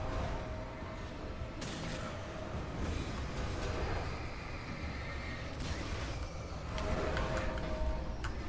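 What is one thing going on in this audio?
Heavy metal objects crash and clang with loud bangs.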